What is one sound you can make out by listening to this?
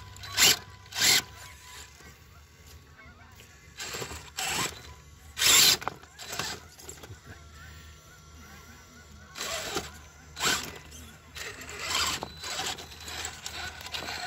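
A small electric motor whines in short bursts.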